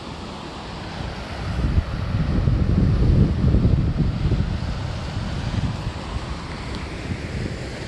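Waves crash and surge against rocks below.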